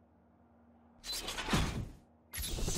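A short swooshing sound plays.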